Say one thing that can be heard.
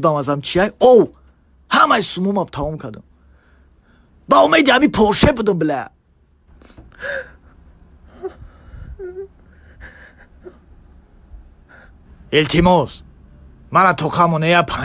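A man shouts angrily, close by.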